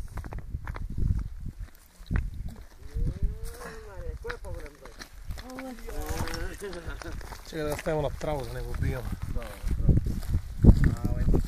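Footsteps crunch on gravel and dry grass.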